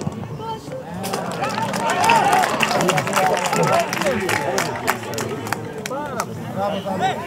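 Spectators clap their hands.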